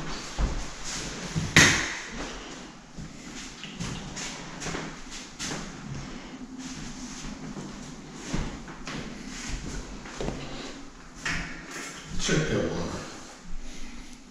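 Footsteps thud and tap on a hard floor in an empty, echoing room.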